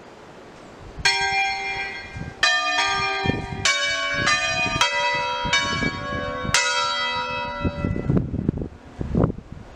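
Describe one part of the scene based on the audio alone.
A church bell rings out loudly in a series of ringing strikes, outdoors.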